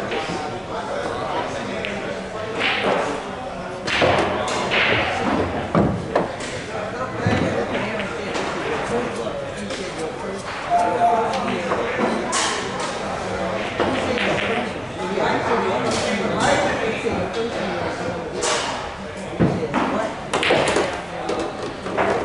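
A cue stick strikes a pool ball with a sharp click.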